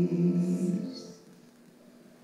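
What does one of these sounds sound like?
A band's final chord rings out and fades.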